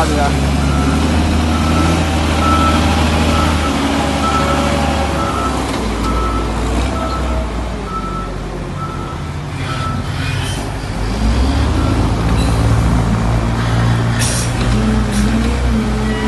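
A wheel loader's diesel engine rumbles and revs nearby.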